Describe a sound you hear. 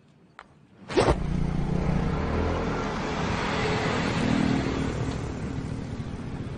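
Motorcycle engines run and traffic rumbles in a street outdoors.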